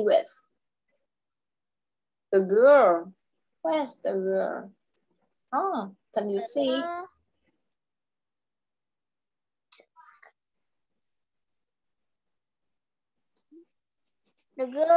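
A young woman speaks clearly over an online call, asking questions in short phrases.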